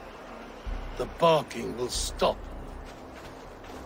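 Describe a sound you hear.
A man speaks forcefully, close by.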